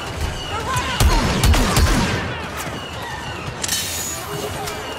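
Laser rifles fire in sharp bursts nearby.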